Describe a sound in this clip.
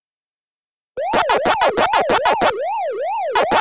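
An arcade game's quick munching blips chirp in a rapid rhythm.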